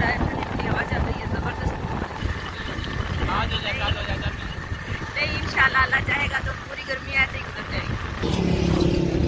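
A middle-aged woman talks and laughs close by.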